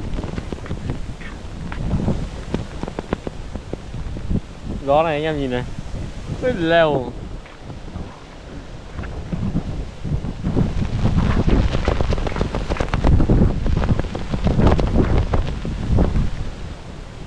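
Tall grass and leaves rustle in the wind.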